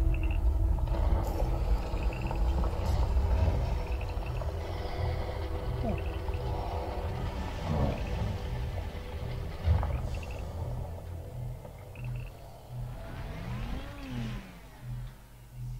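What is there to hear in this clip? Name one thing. A vehicle engine rumbles low and steady as it drives over rough ground.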